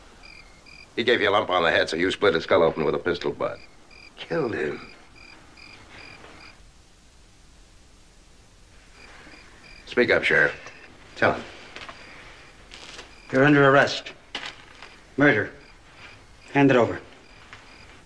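An older man speaks with a sly, teasing tone up close.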